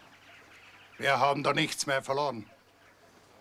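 An elderly man speaks loudly nearby.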